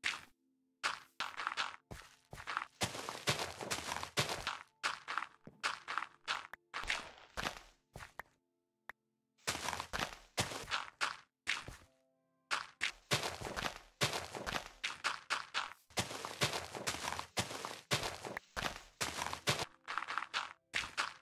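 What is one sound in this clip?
A shovel crunches repeatedly into dirt.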